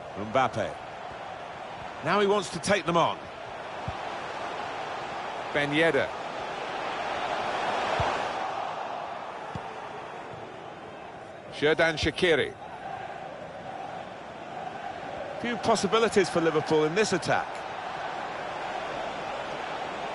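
A stadium crowd murmurs steadily, swelling briefly.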